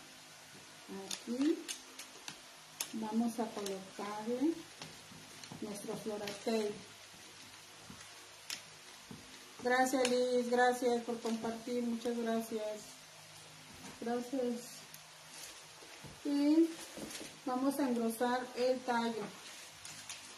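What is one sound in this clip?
A middle-aged woman talks calmly, close by.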